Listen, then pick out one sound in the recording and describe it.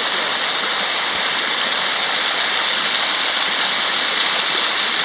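A small stream of water rushes and gurgles close by.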